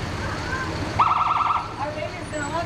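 A police car gives a short siren blast.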